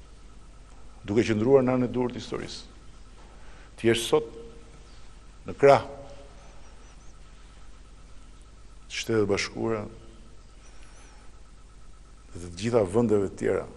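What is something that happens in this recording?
An older man speaks slowly and solemnly through a microphone, with long pauses.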